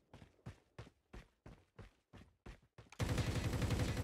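Footsteps thud at a steady running pace.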